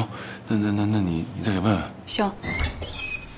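A man speaks in a worried tone close by.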